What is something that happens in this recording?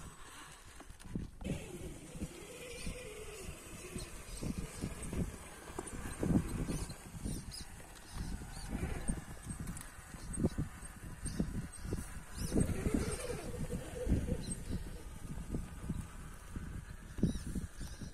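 A small electric motor whines as a toy truck crawls over rock.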